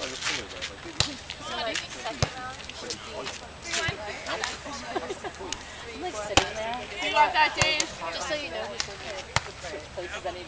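A volleyball is struck by hand with sharp slaps.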